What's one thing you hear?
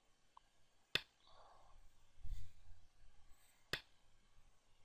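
A game stone clicks sharply onto a board.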